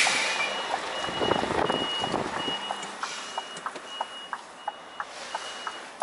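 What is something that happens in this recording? A truck engine rumbles as the truck pulls away.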